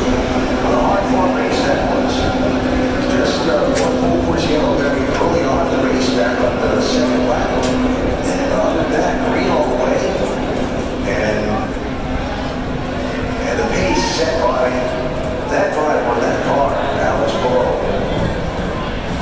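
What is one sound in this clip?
A crowd of spectators chatters nearby in the open air.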